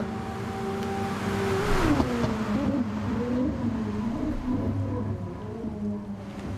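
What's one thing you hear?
A racing car engine roars and drops in pitch as the car slows.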